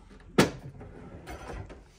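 A wooden drawer slides shut with a thump.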